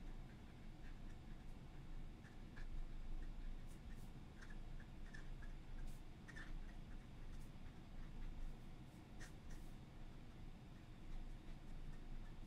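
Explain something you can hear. A fountain pen scratches across paper.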